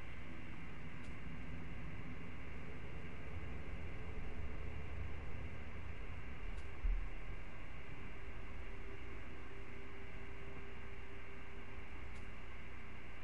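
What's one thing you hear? A soft menu click sounds a few times.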